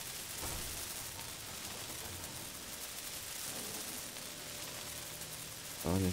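A welding torch hisses and crackles with sparks.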